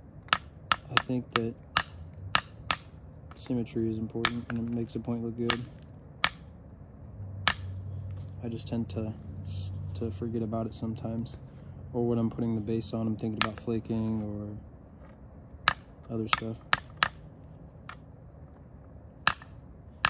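An antler tool scrapes and clicks sharply against the edge of a stone flake.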